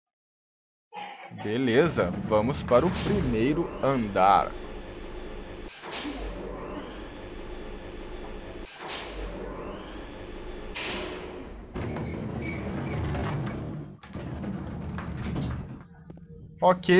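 An elevator hums and rumbles steadily as it moves.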